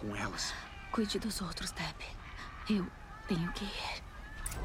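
A young woman speaks quietly and tensely.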